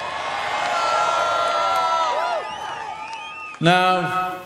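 A large crowd sings together outdoors.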